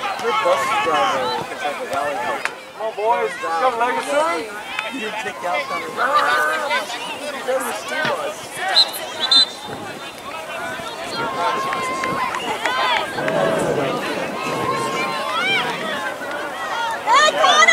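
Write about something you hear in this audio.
Several men and women talk and call out across an open outdoor field.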